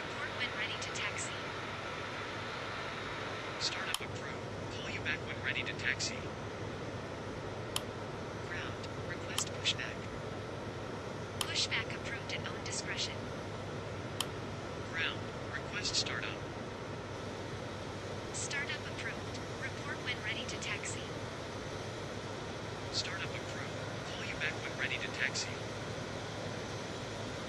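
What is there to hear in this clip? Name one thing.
Jet engines whine steadily at idle.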